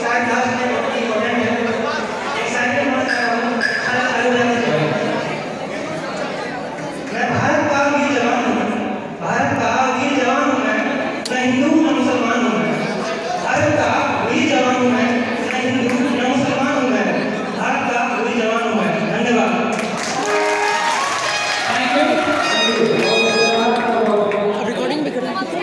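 Music plays loudly through loudspeakers.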